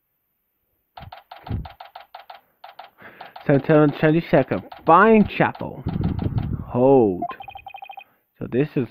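A handheld game console plays quick, repeating beeps as text scrolls.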